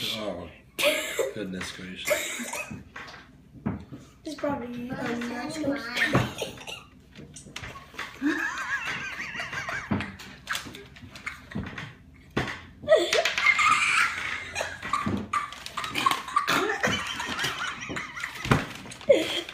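A young boy laughs loudly close by.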